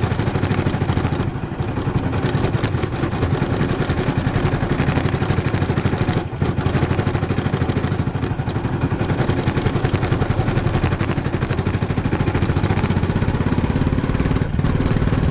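A racing car engine roars loudly up close, rising and falling with the throttle.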